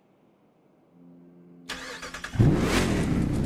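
A truck engine cranks and starts up.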